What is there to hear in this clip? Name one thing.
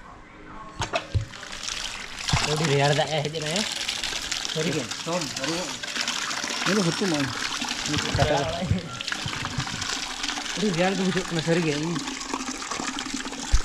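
Water splashes into a bucket.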